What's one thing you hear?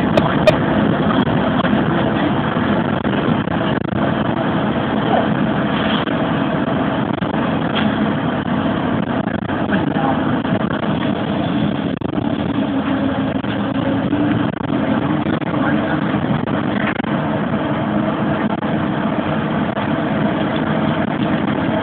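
A bus engine hums and rumbles steadily while driving along a road.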